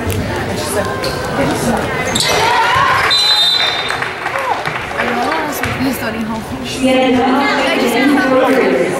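Sneakers squeak on a hardwood court in a large echoing gym.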